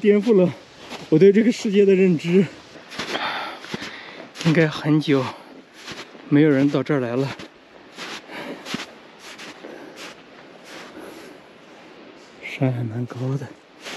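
Footsteps crunch on snow and gravel.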